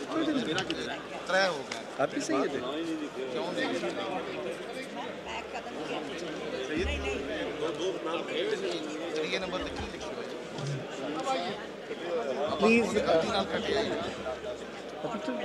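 Many men and women talk and chatter at once in a large, busy hall.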